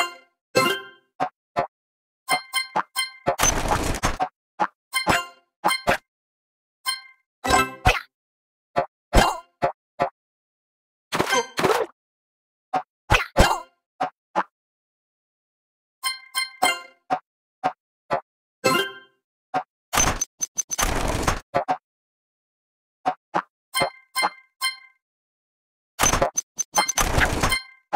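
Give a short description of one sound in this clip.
A bouncing ball in a game makes short, springy boing sounds again and again.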